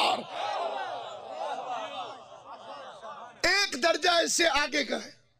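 A man speaks with animation into a microphone, his voice carried over a loudspeaker.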